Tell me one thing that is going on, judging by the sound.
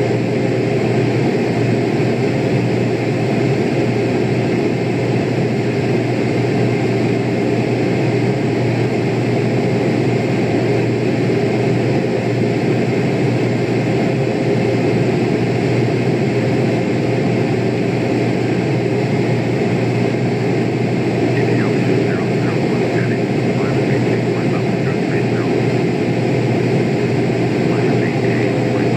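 Jet engines drone steadily.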